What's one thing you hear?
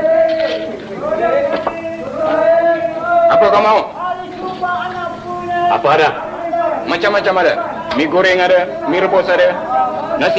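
A young man talks in a friendly, lively tone, nearby.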